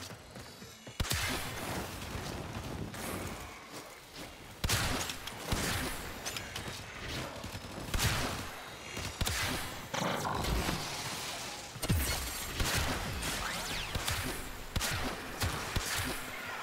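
Game weapons fire and strike with sharp bursts.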